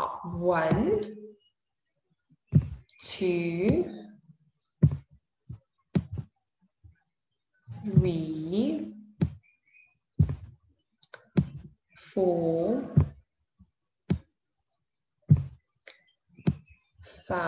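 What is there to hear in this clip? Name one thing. A young woman speaks calmly and clearly into a microphone, in short phrases with pauses.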